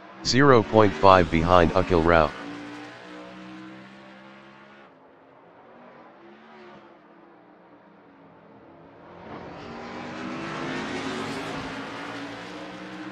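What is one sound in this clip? Race car engines roar and whine, rising and falling in pitch as the cars speed past.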